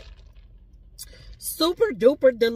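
A woman sips a drink through a straw.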